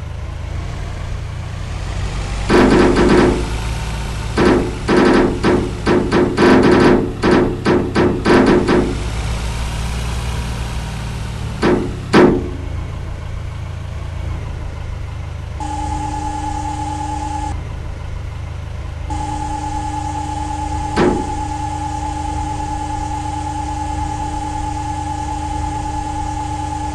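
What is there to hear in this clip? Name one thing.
A heavy loader engine rumbles and drones steadily.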